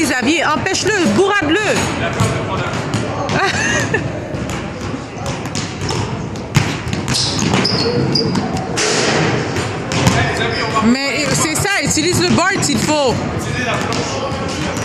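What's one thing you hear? A basketball is dribbled on a hardwood floor in a large echoing hall.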